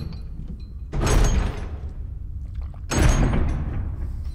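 Heavy metal double doors grind open with a rumble.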